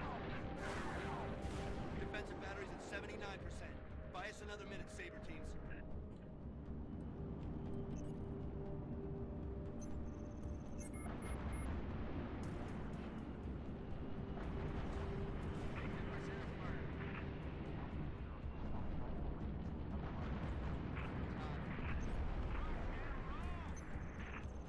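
Spaceship engines roar steadily.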